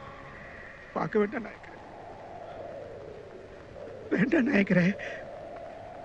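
A man cries out in grief, his voice breaking.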